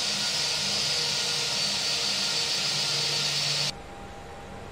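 A jet engine whines loudly outside the cabin.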